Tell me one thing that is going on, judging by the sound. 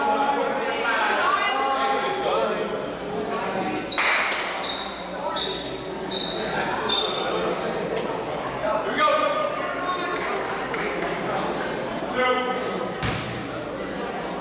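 Young men talk and call out in a large echoing gym.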